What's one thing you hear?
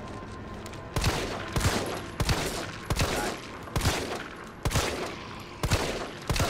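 A handgun fires a series of shots.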